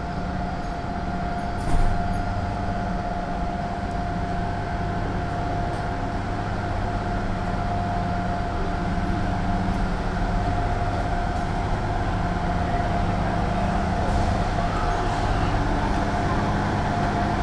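Footsteps walk steadily on paving outdoors.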